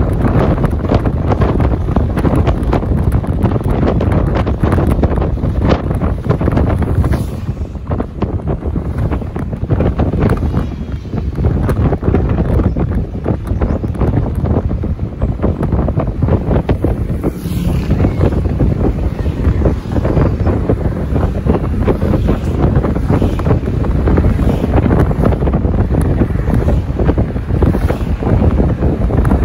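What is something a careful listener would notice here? Wind buffets loudly against a moving vehicle.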